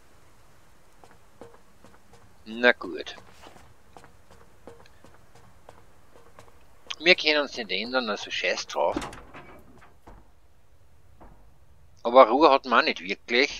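Footsteps thud softly on wooden boards.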